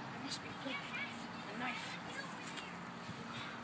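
A child talks excitedly nearby.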